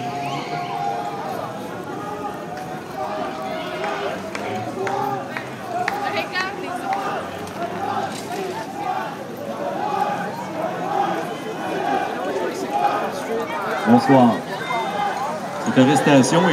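A crowd of people chatters and shouts outdoors.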